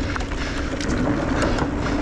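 Bicycle tyres clatter over wooden planks.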